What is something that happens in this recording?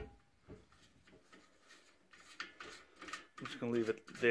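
A metal pin knob on a rack clicks as it is turned.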